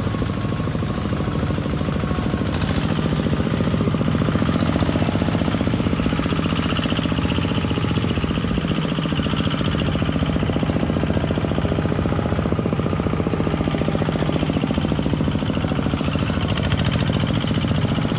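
A small tractor engine chugs steadily and loudly close by.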